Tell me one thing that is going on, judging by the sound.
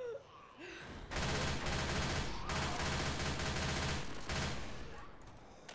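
A gun fires in a rapid burst.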